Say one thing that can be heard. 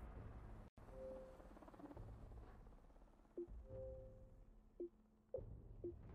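Short electronic beeps chime several times.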